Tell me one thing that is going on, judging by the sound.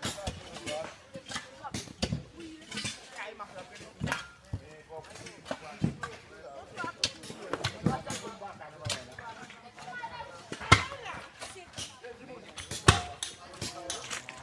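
Tools strike rocks and stones clink.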